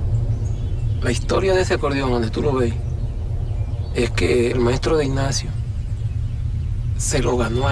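An elderly man speaks calmly outdoors.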